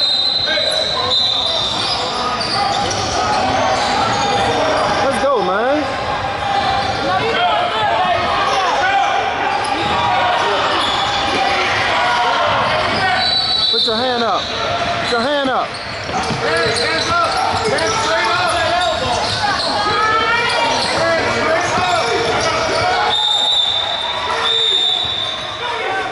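A crowd of spectators talks and cheers in a large echoing hall.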